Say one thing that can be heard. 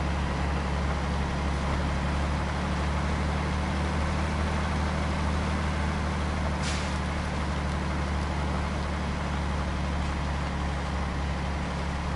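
A heavy truck engine rumbles steadily as the truck drives.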